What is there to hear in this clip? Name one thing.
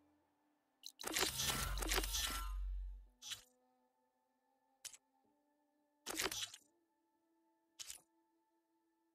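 Short menu clicks and chimes sound now and then.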